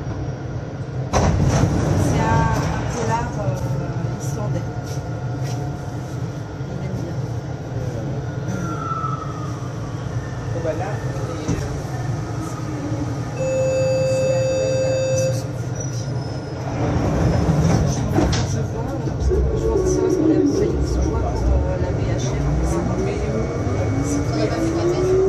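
A train rumbles and hums steadily along a track.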